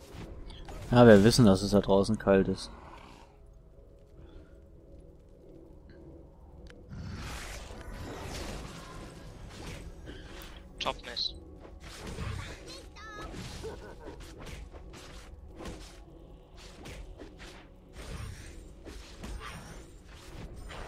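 Game spell effects and sword strikes clash in quick bursts.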